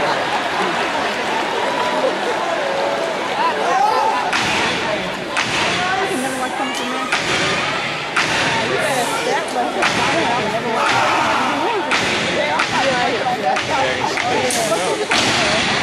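A large crowd screams and cheers in a big echoing hall.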